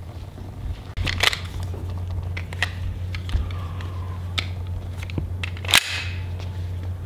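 A pistol clicks and clacks as it is handled.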